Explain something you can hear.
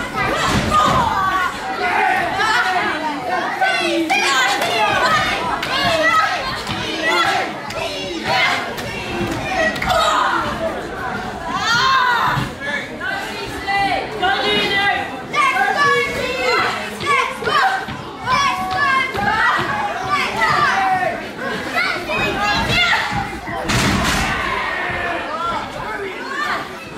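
A crowd of spectators cheers and chatters in an echoing hall.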